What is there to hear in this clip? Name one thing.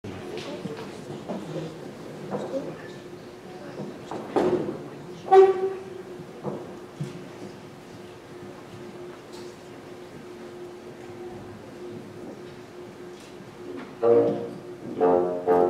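Bassoons hold a long, low note in a reverberant hall.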